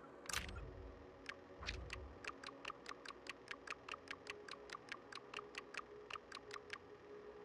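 A game menu ticks rapidly as entries scroll by.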